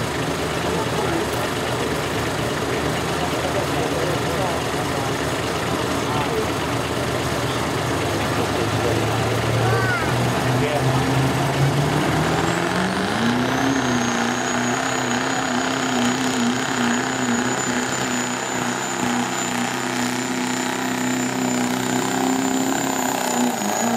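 A diesel truck engine roars loudly, climbing in pitch and then holding a high, strained drone.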